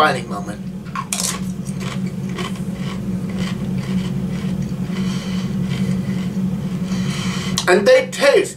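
A man crunches on a chip.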